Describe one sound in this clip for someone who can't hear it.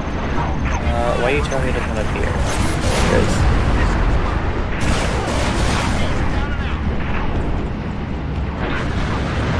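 Spaceship engines roar and whoosh.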